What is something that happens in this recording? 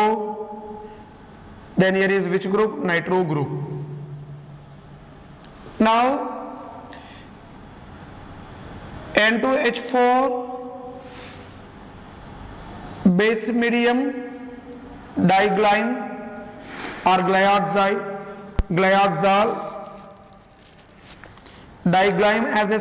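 A man explains calmly in a lecturing voice, in a slightly echoing room.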